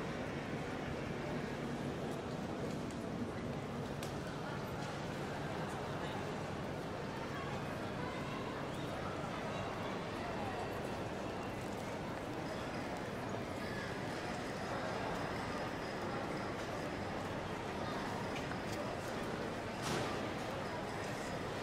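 Crowd chatter echoes through a large hall.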